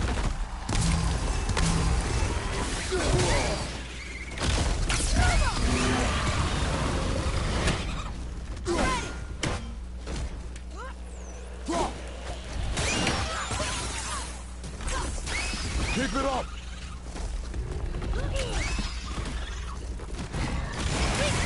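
An axe strikes and clangs in a fight.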